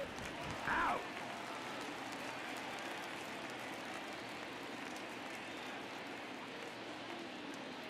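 A large stadium crowd murmurs.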